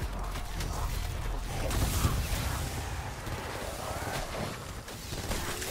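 An electric weapon crackles and zaps loudly.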